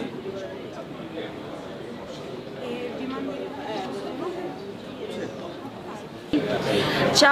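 A young woman talks quietly nearby.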